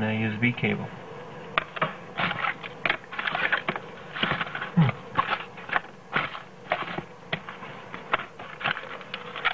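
Cardboard pieces scrape and tap as they are lifted.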